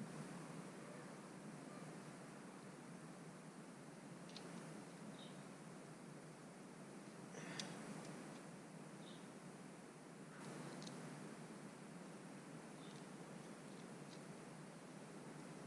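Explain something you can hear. Small metal tools click and scrape against an engine casing.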